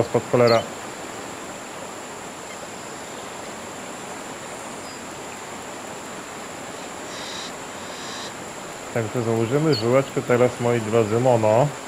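A fishing reel clicks softly as line is wound in.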